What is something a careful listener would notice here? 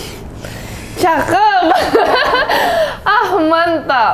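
A young woman laughs loudly, close by.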